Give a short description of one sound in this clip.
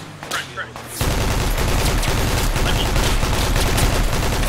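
A machine gun fires in loud rapid bursts.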